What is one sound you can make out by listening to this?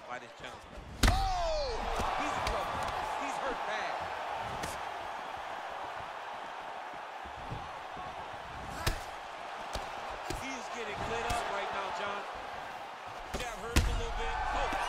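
Punches land with heavy thuds.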